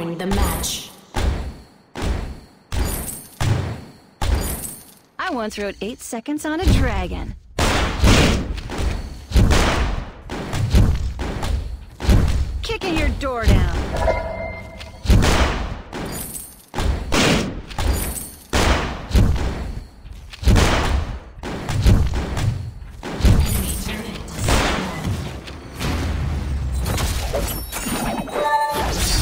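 Video game combat effects of hits and spells ring out rapidly.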